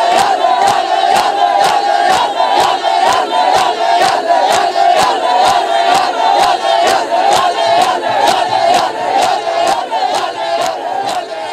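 A crowd of men beats their chests in a steady rhythm of loud slaps.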